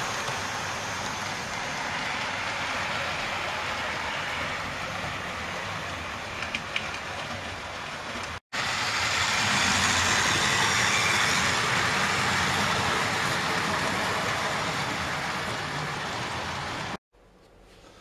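A model train rattles and whirs steadily along its track.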